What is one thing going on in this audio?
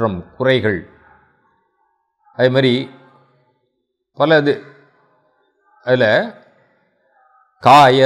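A middle-aged man speaks calmly into a close microphone, in short phrases with pauses.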